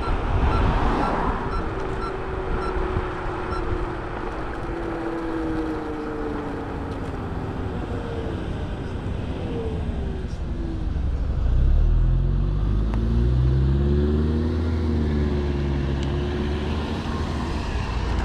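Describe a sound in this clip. A motorcycle engine hums and shifts in pitch as the rider slows and speeds up.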